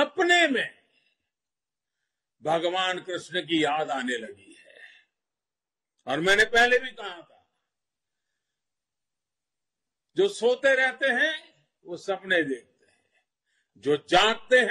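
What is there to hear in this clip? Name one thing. An elderly man speaks forcefully into a microphone, with long pauses.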